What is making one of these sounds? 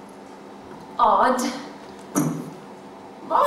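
A young woman speaks on a stage.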